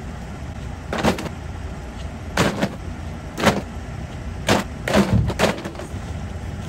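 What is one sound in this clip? Glass and plastic bottles clatter and clink as they land on hard ground.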